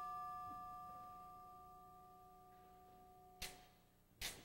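A brass band holds a long chord that slowly fades in a large hall.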